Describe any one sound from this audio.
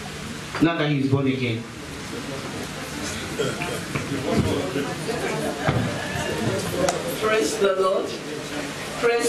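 A crowd murmurs in a room.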